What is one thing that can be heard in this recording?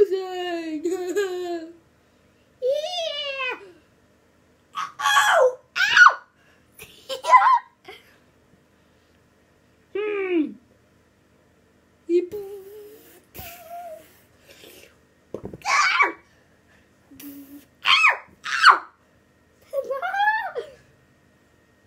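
A young child talks and squeals playfully close by, in short bursts.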